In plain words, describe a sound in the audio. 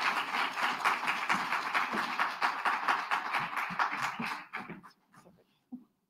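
An audience applauds loudly in a large room, then the clapping fades away.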